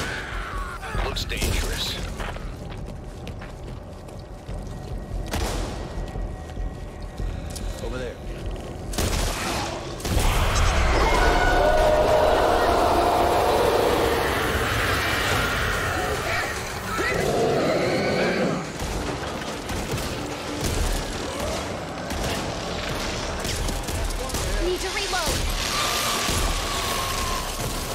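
A monster growls and roars up close.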